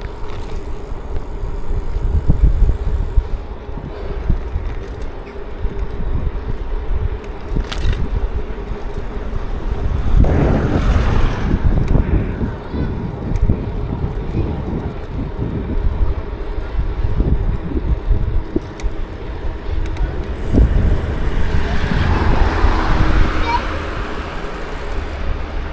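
Wind rumbles loudly past a moving bicycle.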